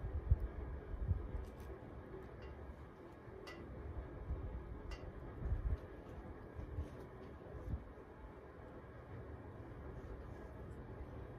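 A small hand trowel scrapes and digs into soft soil.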